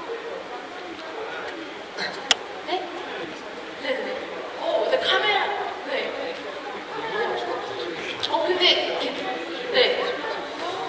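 A young man talks into a microphone, heard over loudspeakers in a large echoing hall.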